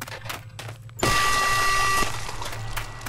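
A heavy door opens with a loud ringing clunk.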